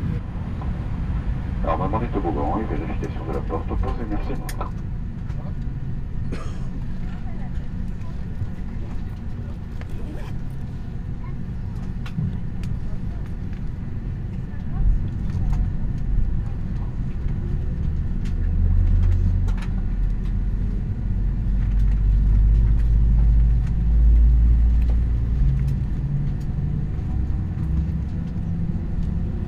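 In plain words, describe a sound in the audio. A jet engine hums steadily from inside an aircraft cabin.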